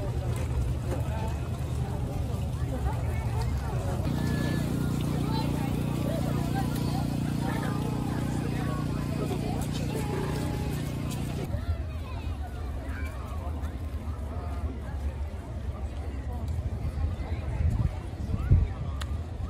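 A large crowd chatters outdoors, with many voices blending together.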